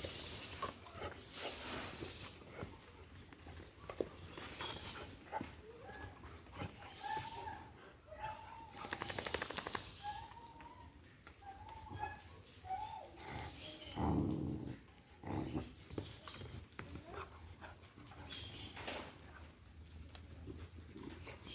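Two dogs growl and snarl playfully.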